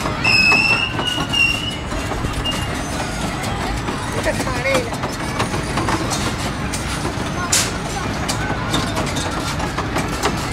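A merry-go-round ride rattles and clatters as it spins.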